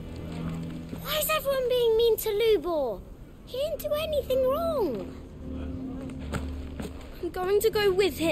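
A young boy speaks loudly and upset, close by.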